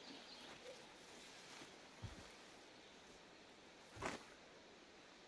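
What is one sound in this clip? A wooden log thuds onto the ground.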